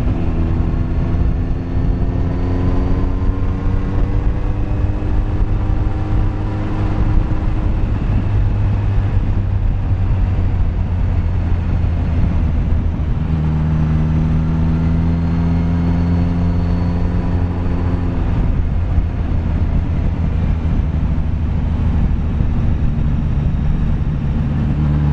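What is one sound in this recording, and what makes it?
A motorcycle engine hums steadily, rising and falling in pitch as it changes speed.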